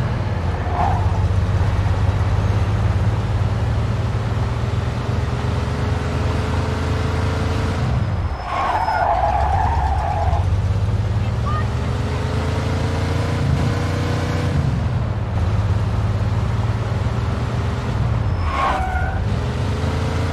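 A car engine hums steadily and revs up and down as the car drives along.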